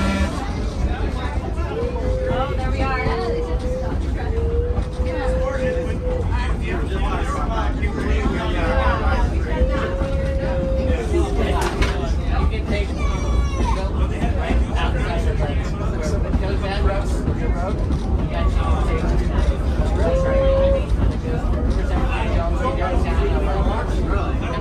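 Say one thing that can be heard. An old tram rumbles and rattles along the tracks.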